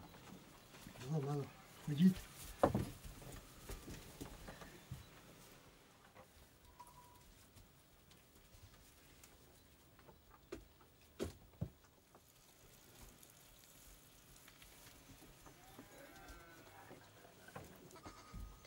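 Goats and lambs bleat close by.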